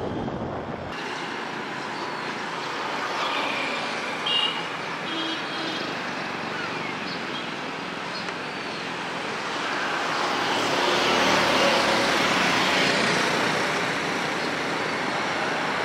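Motorcycle engines hum and pass by on a road.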